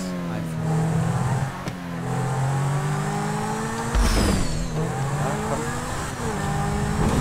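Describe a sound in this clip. A racing car engine roars and revs up and down.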